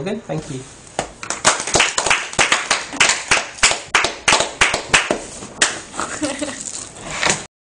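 A person claps hands close by.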